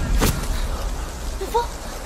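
A young woman asks something in a worried voice.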